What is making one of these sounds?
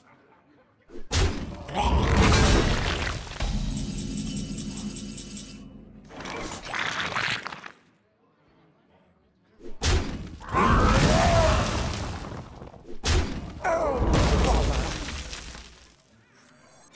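A game's sound effects crash and burst as cards attack.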